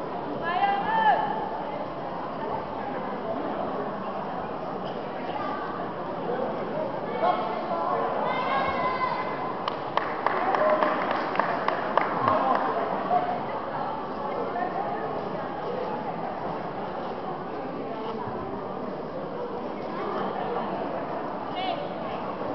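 A crowd murmurs and calls out in a large echoing hall.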